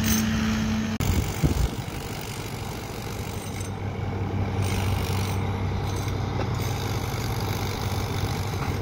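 The diesel engine of a crawler excavator rumbles.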